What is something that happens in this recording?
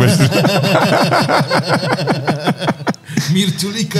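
Another young man laughs along, close to a microphone.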